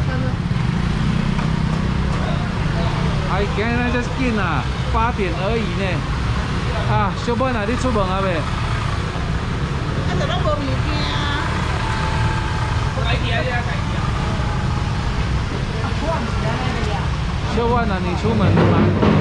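Motor scooters drive past outdoors.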